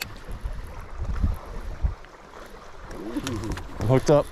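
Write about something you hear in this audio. A fishing reel clicks and whirs as line is wound in.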